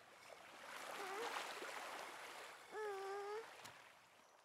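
A toddler girl babbles and coos close by.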